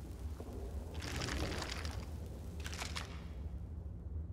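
A heavy chest creaks open.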